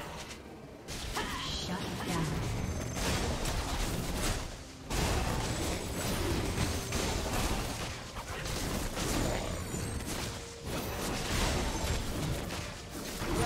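Fantasy battle sound effects crackle, whoosh and thud continuously.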